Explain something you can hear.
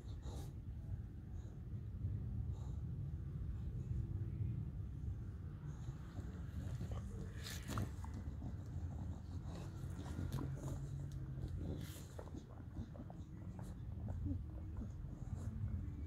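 A bulldog snorts and wheezes loudly as it breathes.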